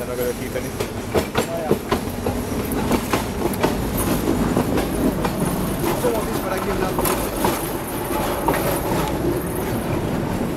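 Tram wheels clatter over rail joints.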